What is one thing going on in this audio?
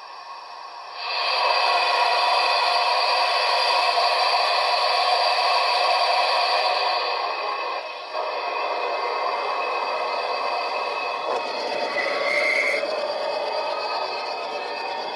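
A model steam locomotive hisses steam steadily.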